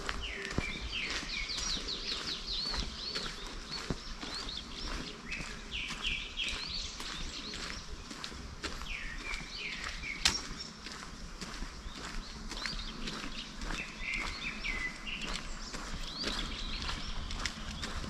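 Footsteps crunch steadily on a paved path outdoors.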